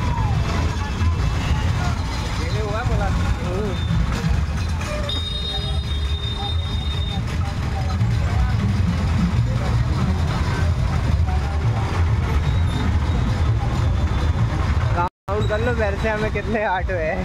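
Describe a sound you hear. Auto rickshaw engines idle and rumble close by.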